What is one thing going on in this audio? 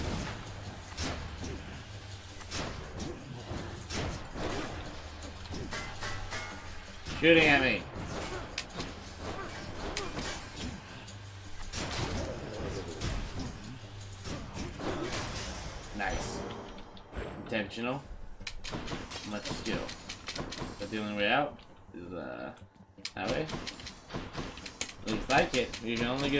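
Game combat sounds of slashing and magic blasts ring out.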